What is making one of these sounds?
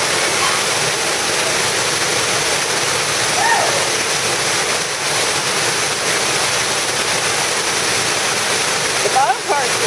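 A waterfall roars steadily, splashing into a pool.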